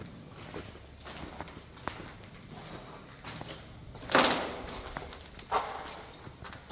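Footsteps crunch on debris underfoot.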